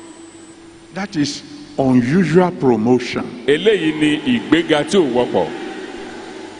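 A second man speaks into a microphone in turn, echoing through a loudspeaker.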